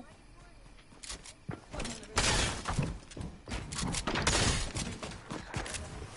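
Wooden walls are built in quick succession with clattering thuds.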